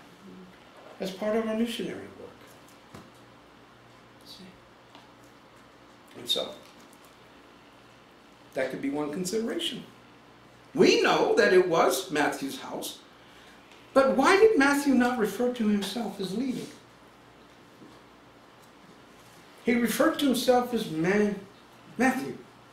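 A middle-aged man speaks calmly in short bursts with pauses, close by.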